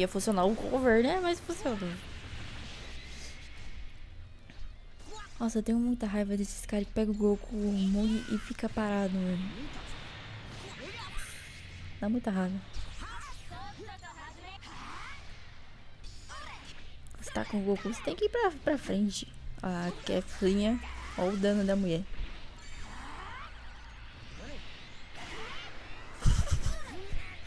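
Energy blasts whoosh and explode in a fast fight.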